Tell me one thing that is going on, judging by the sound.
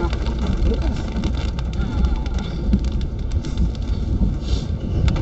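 Rain falls steadily and patters on a windshield.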